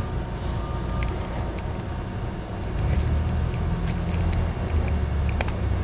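Plastic tape crinkles softly as it is wrapped around a small metal fitting.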